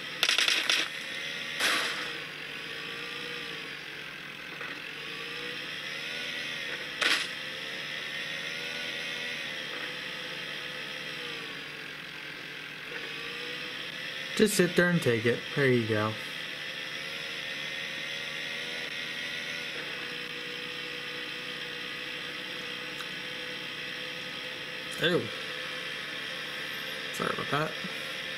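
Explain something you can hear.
Engine noise from a video game drones steadily through a small phone speaker.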